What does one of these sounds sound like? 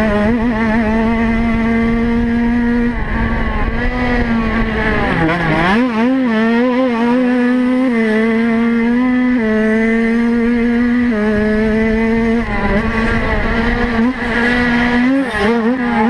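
A dirt bike engine roars up close, its pitch rising and falling as the rider shifts and throttles.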